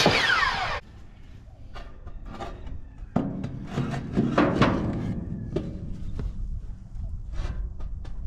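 A wooden board knocks and scrapes against metal.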